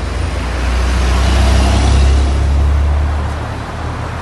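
A car passes close by with a rush of air.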